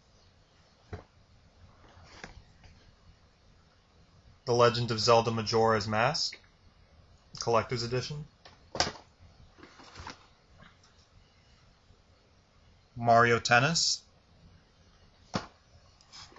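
A cardboard box is set down on a stack of boxes.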